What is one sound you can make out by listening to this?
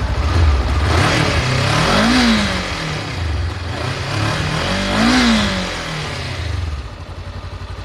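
A motorcycle engine revs up twice and falls back.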